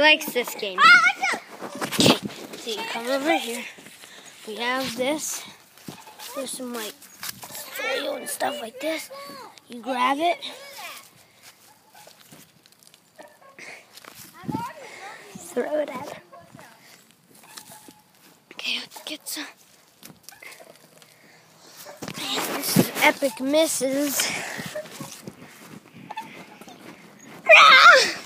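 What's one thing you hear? Young children talk and shout excitedly close by.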